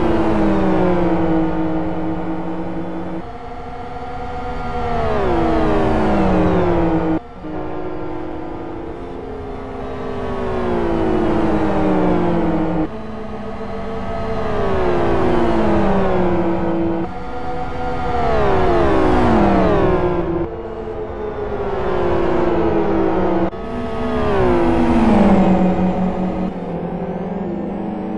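Racing car engines roar loudly, revving up and dropping in pitch as they shift gears and pass by.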